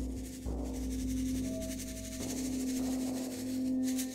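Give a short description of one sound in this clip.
A frame drum thumps softly.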